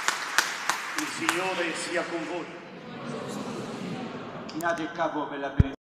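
A man chants in a large echoing hall, heard through a microphone.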